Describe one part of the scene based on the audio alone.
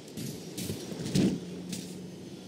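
A body thuds hard onto the ground.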